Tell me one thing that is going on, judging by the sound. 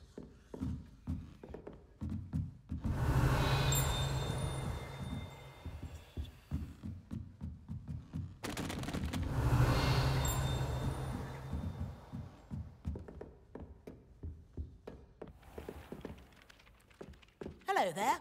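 Footsteps tap steadily.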